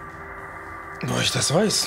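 A woman speaks up close.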